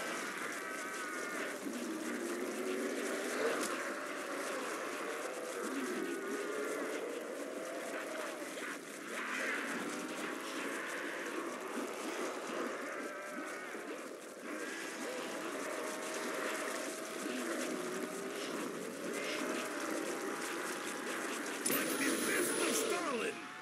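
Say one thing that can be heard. Monsters groan and snarl close by.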